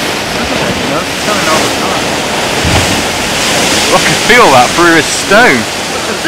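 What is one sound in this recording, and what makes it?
Large waves crash and burst against a wall.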